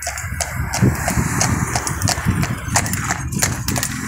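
A horse's hooves clop on the road.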